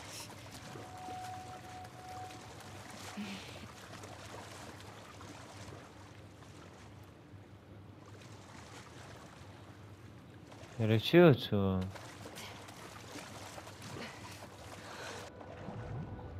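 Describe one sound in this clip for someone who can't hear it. Water splashes as a person swims.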